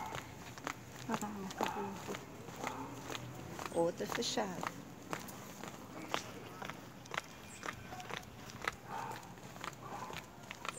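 Footsteps tap steadily on pavement outdoors.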